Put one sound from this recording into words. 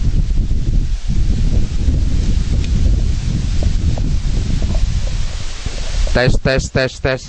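Wind rumbles loudly outdoors.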